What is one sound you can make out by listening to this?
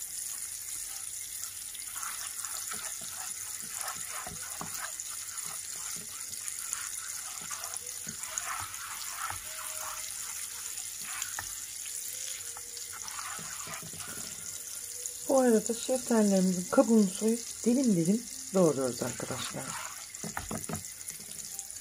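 Butter sizzles and bubbles steadily in a pan.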